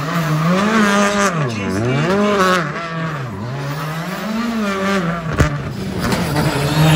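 A rally car engine revs hard, its pitch rising and falling again and again.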